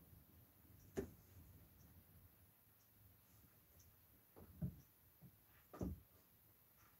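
Small objects knock softly on a table.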